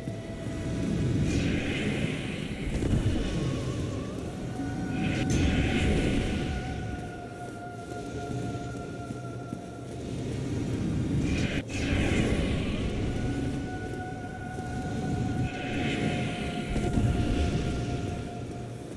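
A magical energy blast whooshes and hisses in bursts.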